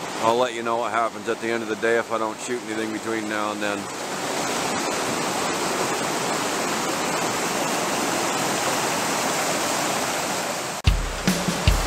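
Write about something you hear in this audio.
A mountain stream rushes over rocks.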